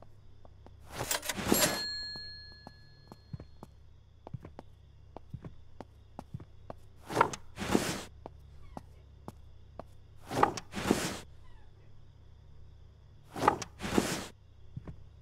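A drawer slides shut.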